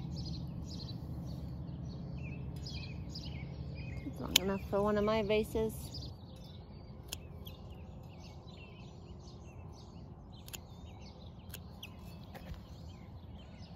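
Pruning shears snip sharply through plant stems.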